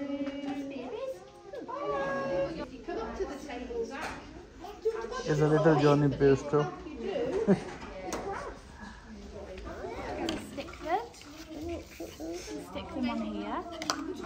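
Small children babble and chatter.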